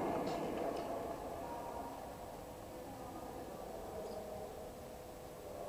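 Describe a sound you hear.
Young people call out and chatter in a large echoing hall.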